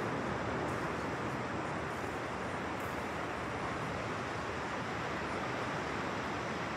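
Gentle surf washes onto a flat sandy shore in the distance.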